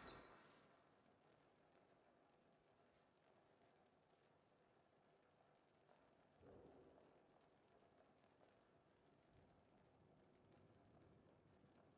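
Soft footsteps tap on a floor.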